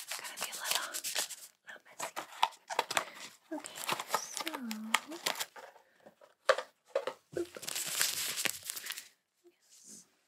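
Paper packaging crinkles and rustles close by.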